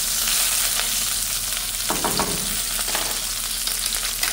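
A spatula scrapes across a nonstick pan.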